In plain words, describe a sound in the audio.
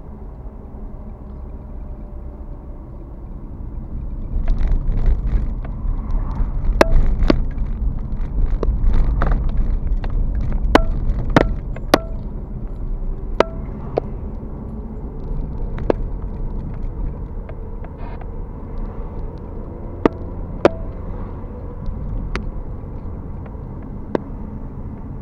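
A car engine hums and tyres roll steadily on the road, heard from inside the car.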